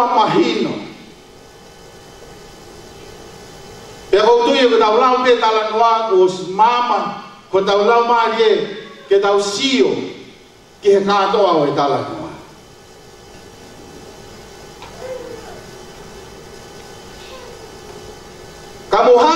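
A man speaks with animation through a microphone, heard over loudspeakers in an echoing room.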